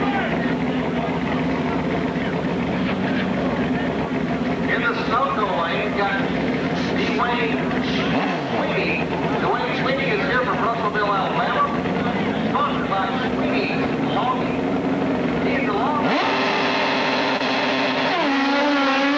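Motorcycle engines idle loudly nearby.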